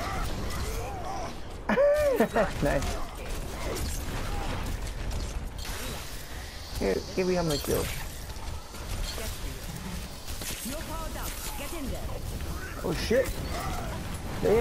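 A heavy hammer swings and slams into an armoured opponent.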